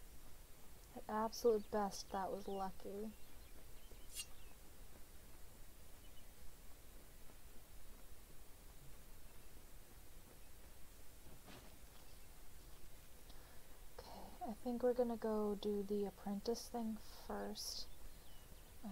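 A young woman talks casually into a microphone.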